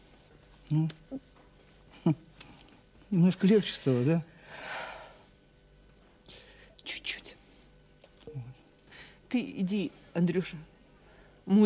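A woman speaks softly and closely.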